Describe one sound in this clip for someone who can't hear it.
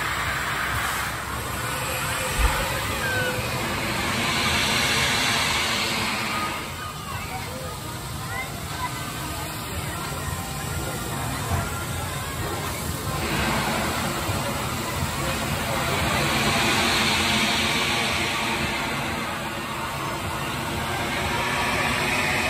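A drop tower ride whooshes as it rises and falls.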